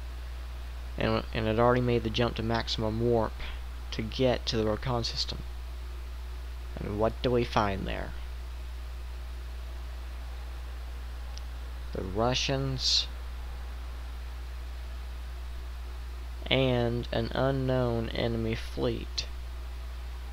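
A young man speaks calmly into a headset microphone, in short bursts with pauses.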